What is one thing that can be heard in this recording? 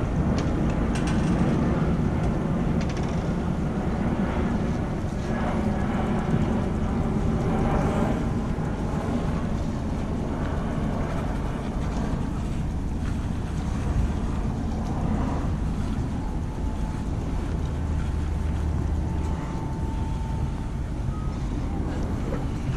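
A ferry engine rumbles steadily nearby.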